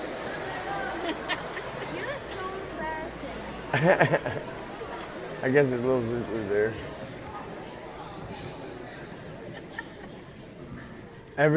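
A crowd of teenagers chatters in a large hall.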